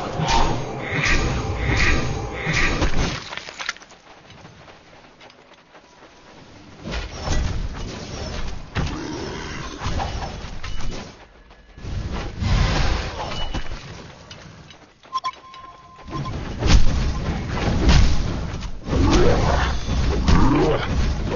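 Fiery spells burst and crackle in a battle.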